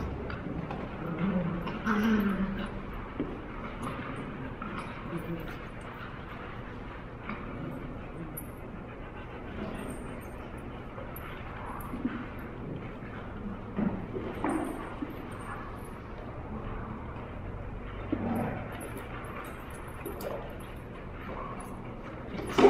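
Dog claws patter and scrape on a hard floor.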